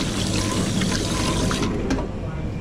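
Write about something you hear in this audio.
Water runs from a tap onto hands.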